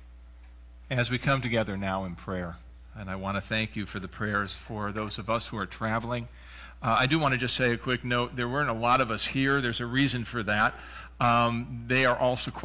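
A man speaks steadily through a microphone, with pauses.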